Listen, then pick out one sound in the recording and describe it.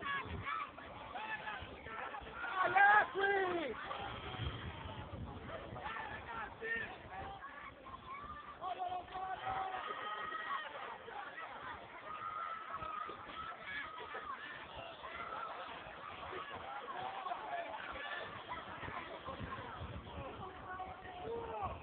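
Young women shout and call to each other outdoors across an open field.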